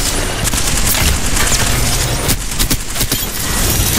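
A rapid-firing gun shoots in quick bursts.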